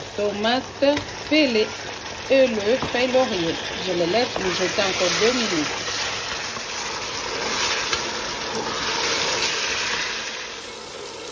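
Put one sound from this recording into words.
Food sizzles and bubbles in a pot.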